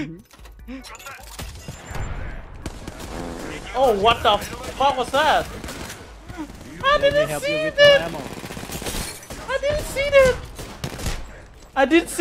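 A young man talks excitedly into a microphone.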